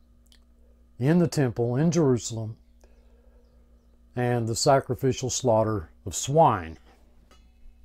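An elderly man speaks calmly and close up, in short phrases with pauses.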